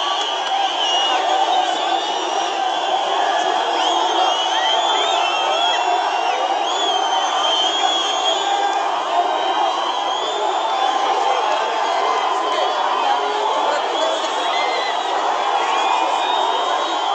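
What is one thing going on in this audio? Women ululate in high, wavering trills among a crowd.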